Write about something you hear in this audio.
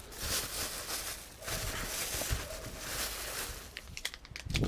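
A plastic bag rustles and crinkles as bread rolls are handled.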